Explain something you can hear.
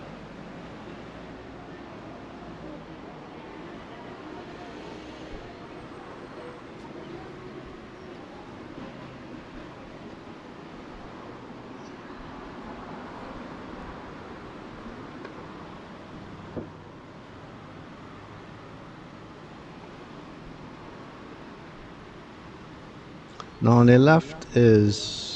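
Car engines hum as traffic rolls slowly past on a street nearby.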